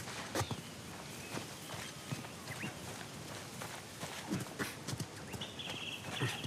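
Footsteps run quickly through rustling grass.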